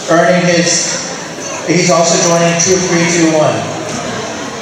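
A man speaks loudly through a microphone in an echoing hall.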